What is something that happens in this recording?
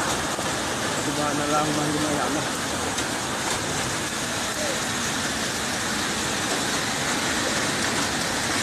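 Muddy floodwater rushes and roars loudly.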